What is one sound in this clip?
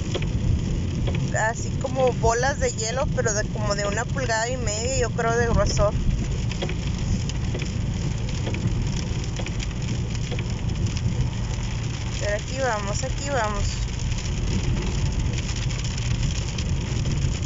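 A car engine rumbles steadily while driving.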